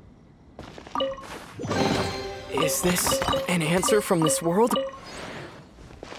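A treasure chest opens with a bright, sparkling chime.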